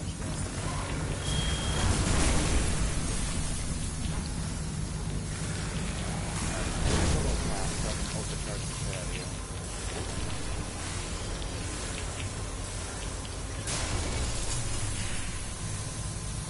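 Energy blasts and explosions burst in a game.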